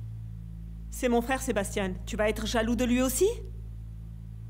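A young woman speaks with animation nearby.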